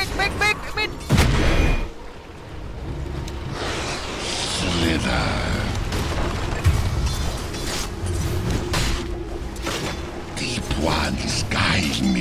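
Weapons clash and spells whoosh in a chaotic fight.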